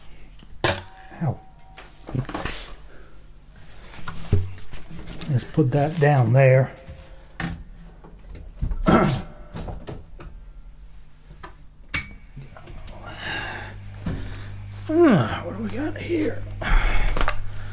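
Guitar strings jangle and thud as guitars are handled.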